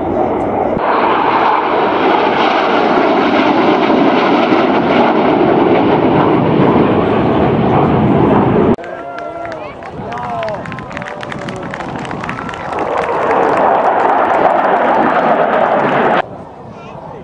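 Jet engines roar loudly overhead.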